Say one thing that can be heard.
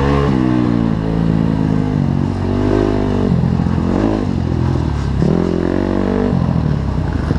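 A dirt bike engine revs up close, its pitch rising and falling.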